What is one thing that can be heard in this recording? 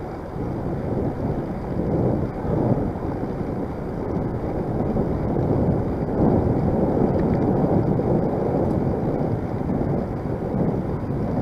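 Wind buffets the microphone outdoors.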